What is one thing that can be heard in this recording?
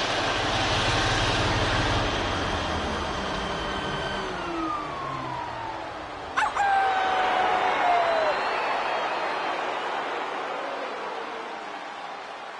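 A crowd cheers loudly in a large echoing arena.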